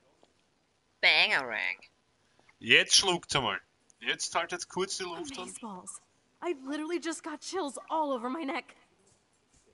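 A young woman speaks nearby in a strained, upset voice.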